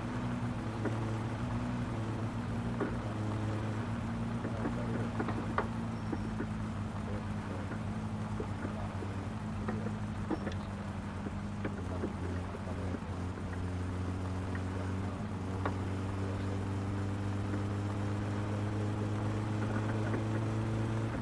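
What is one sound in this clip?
Stones knock against the underside of a car.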